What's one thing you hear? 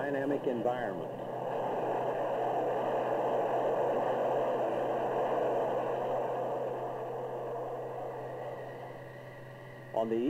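A jet engine roars as an aircraft flies past overhead.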